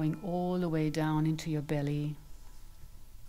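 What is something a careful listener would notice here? A woman sings a few long, held notes nearby.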